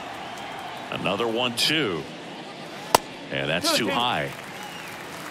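A crowd cheers and whistles in short bursts.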